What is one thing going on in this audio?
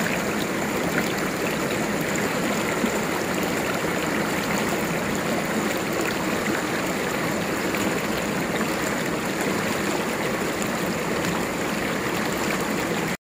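A shallow stream rushes and babbles over rocks close by.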